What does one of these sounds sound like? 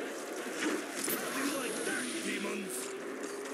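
A ray gun fires with a sharp electric zap.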